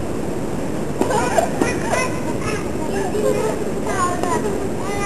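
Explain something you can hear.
A little girl laughs and squeals.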